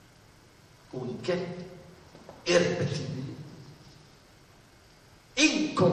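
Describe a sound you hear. An elderly man speaks calmly, with pauses.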